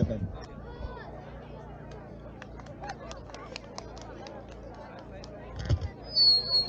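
A crowd of people chatters far off in the open air.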